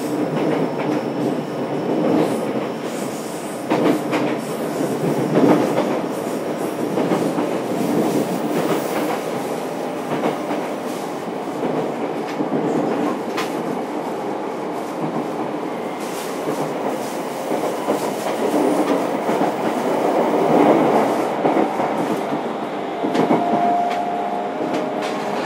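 A stopped train hums steadily nearby.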